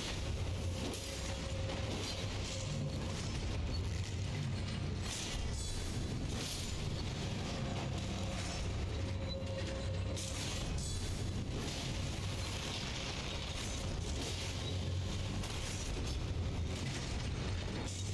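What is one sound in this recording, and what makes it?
Armoured footsteps clank on stone.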